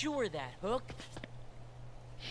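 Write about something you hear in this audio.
A man speaks in a theatrical, sneering voice.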